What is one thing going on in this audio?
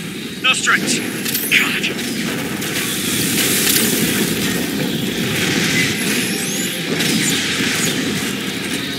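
Flames roar and crackle from a flamethrower.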